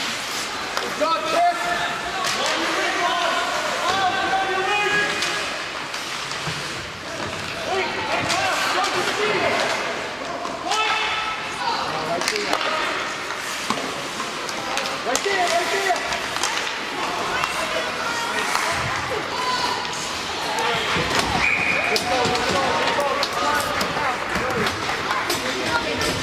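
Spectators shout and cheer in an echoing ice rink.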